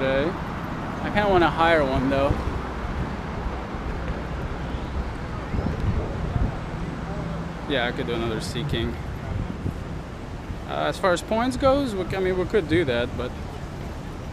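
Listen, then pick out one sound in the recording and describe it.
A young man talks casually and close to a microphone, in short bursts.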